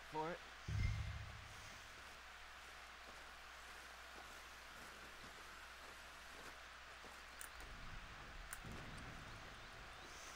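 Footsteps crunch on a rocky path.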